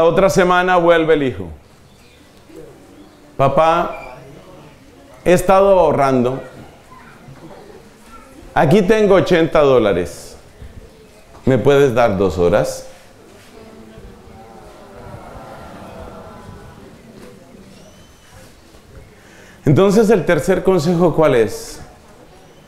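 A man speaks into a microphone in short, emphatic bursts with pauses between them.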